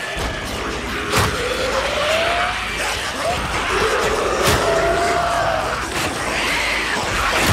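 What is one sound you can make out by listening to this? Snarling creatures growl and shriek close by.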